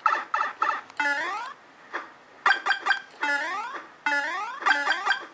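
Cartoon sound effects bounce and slide up in pitch from a phone speaker.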